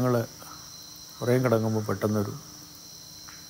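An elderly man speaks calmly and slowly.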